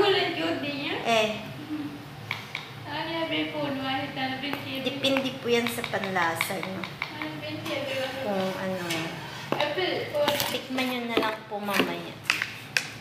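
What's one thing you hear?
A woman talks calmly close by.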